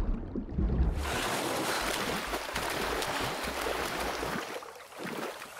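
Water splashes loudly as a swimmer moves through it at the surface.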